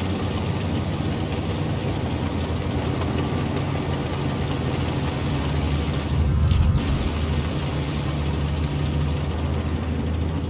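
A tank engine rumbles steadily as the tank drives.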